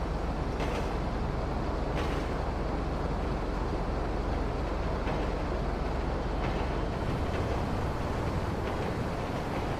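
A large vehicle's engine idles with a low, steady rumble.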